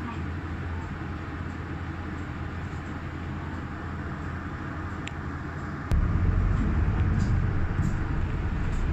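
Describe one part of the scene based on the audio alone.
A vehicle's engine rumbles low and steady, growing louder partway through.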